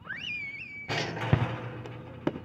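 A basketball clangs off a metal rim.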